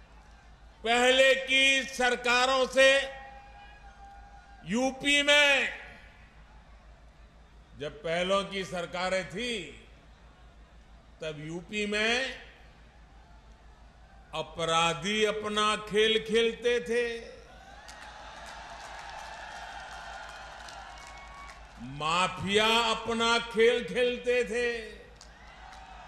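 An older man speaks forcefully into a microphone over a loudspeaker, outdoors.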